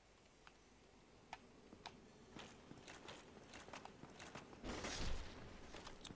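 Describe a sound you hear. Armored footsteps clank on hard ground.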